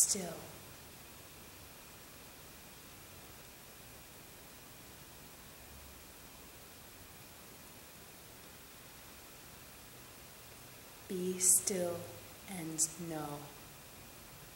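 A young woman speaks a few words calmly and close by.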